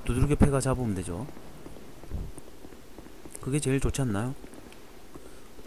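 Footsteps tread on stone.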